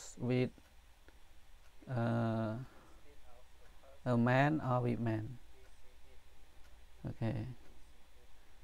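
A man speaks slowly and clearly into a microphone, reading out syllables with pauses.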